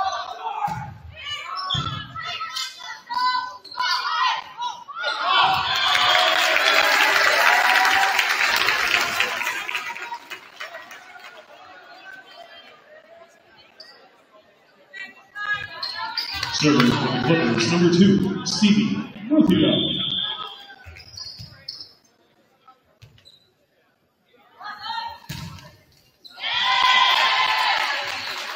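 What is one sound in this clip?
Young women players shout to each other on court.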